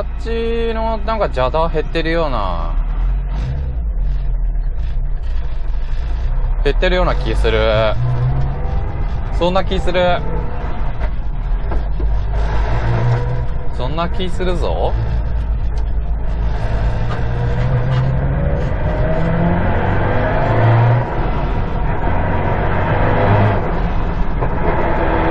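Tyres roll on a road.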